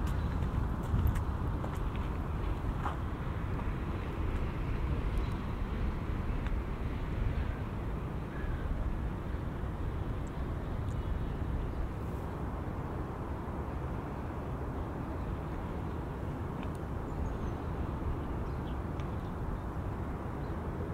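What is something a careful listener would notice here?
Wind rumbles and blows steadily outdoors.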